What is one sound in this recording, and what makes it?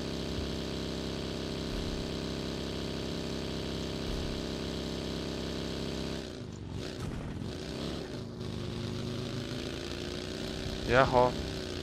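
A buggy engine drones steadily.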